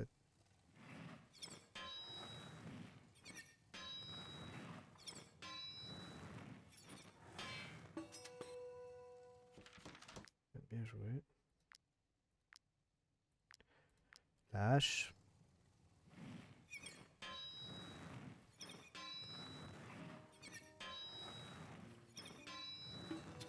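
A hammer strikes metal on an anvil in steady, ringing blows.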